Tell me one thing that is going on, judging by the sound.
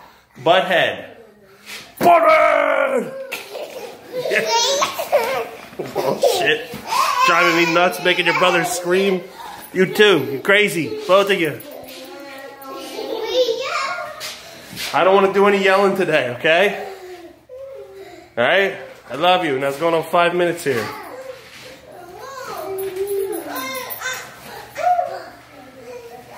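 A young child laughs and squeals close by.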